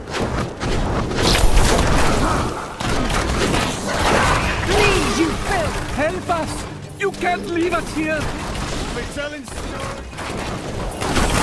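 Weapons slash and spells crackle in a fast fight.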